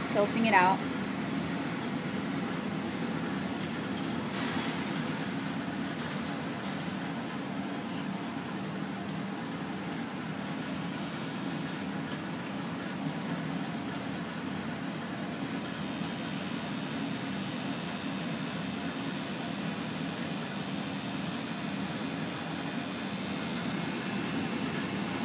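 A ventilation fan hums steadily.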